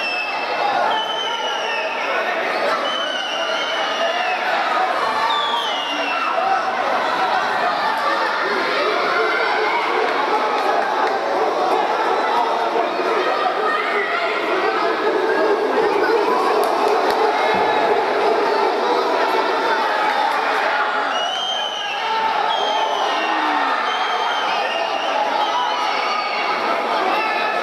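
A crowd cheers and shouts loudly all around.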